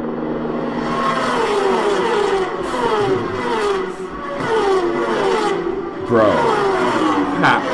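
Supersport racing motorcycles scream past at full throttle, heard through a loudspeaker.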